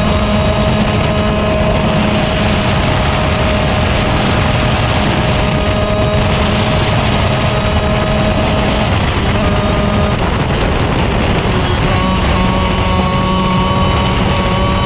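A kart engine roars loudly up close, its pitch rising and falling with the throttle.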